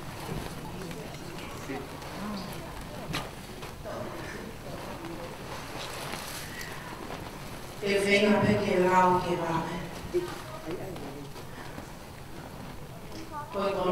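Stiff cloth rustles as it is unfolded and wrapped.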